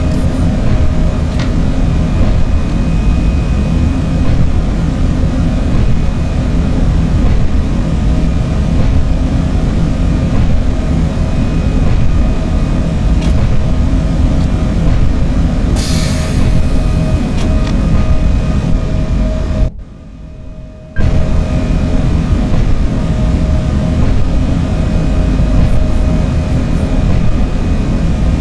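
A train rumbles steadily along the rails at speed, heard from inside the cab.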